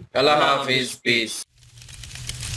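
A man sings with feeling into a microphone, close by.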